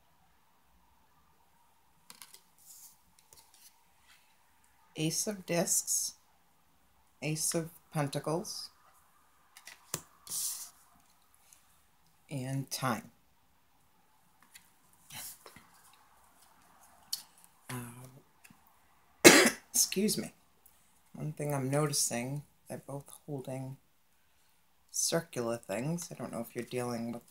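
A hand lays cards down on a table.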